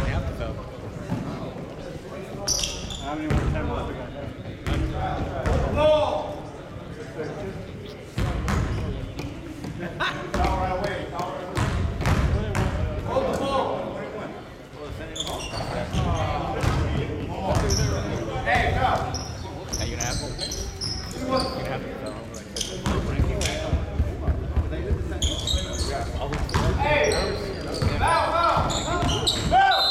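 Men shout and call out to each other in a large echoing gym.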